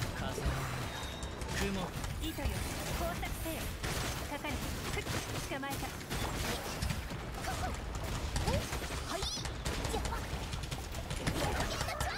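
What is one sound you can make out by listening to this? Game combat effects crash and whoosh loudly.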